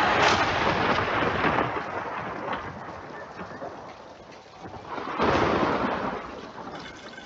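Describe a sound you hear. Rain pours steadily.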